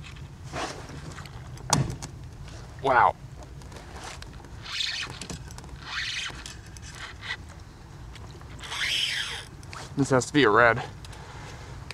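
A fishing reel's drag whirs in short bursts.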